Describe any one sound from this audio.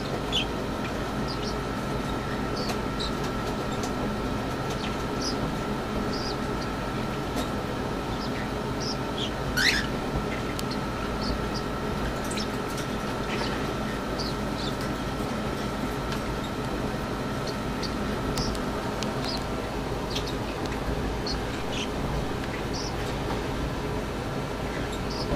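Water bubbles and gurgles steadily in a tank.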